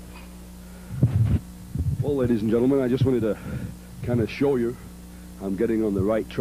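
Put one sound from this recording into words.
A man speaks loudly and forcefully into a microphone.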